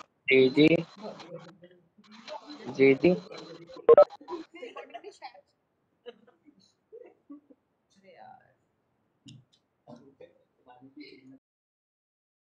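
A woman speaks over an online call.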